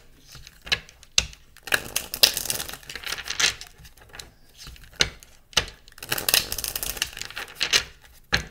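Hands tap and knock on a wooden table.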